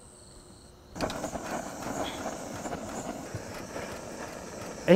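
A gas torch roars steadily.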